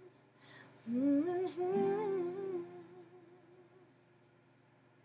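An acoustic guitar is strummed and rings out.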